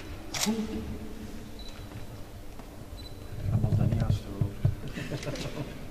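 A crowd of people laughs and chatters in an echoing hall.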